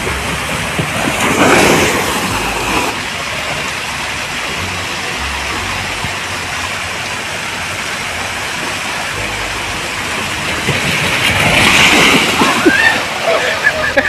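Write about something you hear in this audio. Water gushes and splashes as a rider slides down a water slide.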